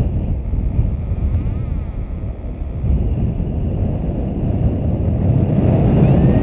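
Wind rushes loudly past a paraglider in flight, growing stronger toward the end.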